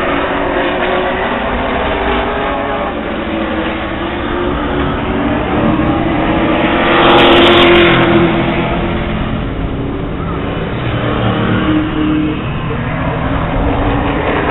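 Race car engines roar and drone around a track outdoors.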